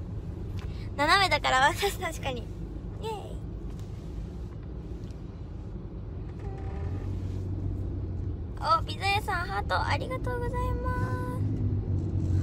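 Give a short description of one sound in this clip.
A young woman speaks close to the microphone with a high, animated voice.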